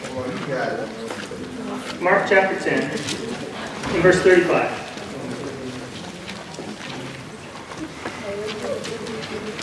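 A man speaks with feeling through a microphone in a room with some echo.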